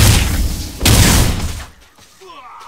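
A magic spell bursts with a loud rushing whoosh.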